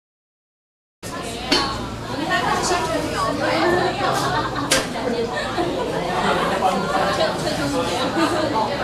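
Several people chatter in a large echoing room.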